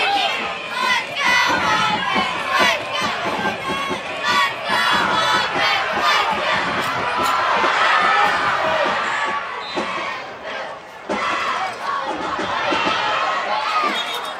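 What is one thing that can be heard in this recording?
A crowd cheers in a large outdoor stadium.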